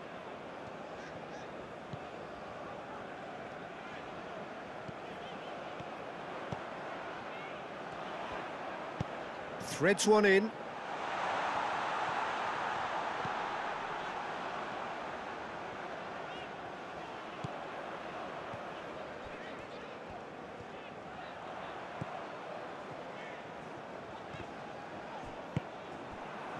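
A large crowd roars steadily in a stadium, swelling for a while.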